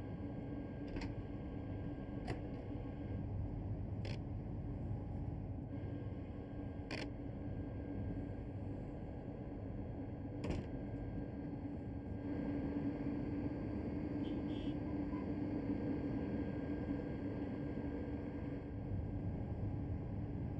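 An electric train hums steadily while standing still.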